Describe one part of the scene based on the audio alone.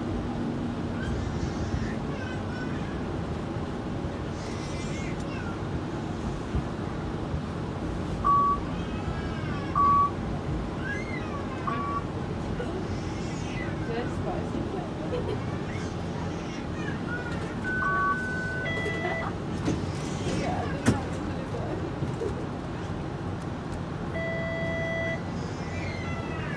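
A streetcar rumbles and rattles steadily along the street.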